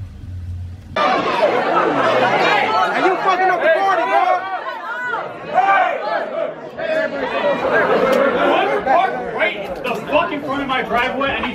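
A crowd of people talks and shouts loudly all at once.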